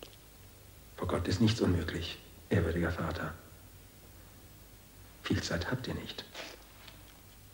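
A young man speaks, close by.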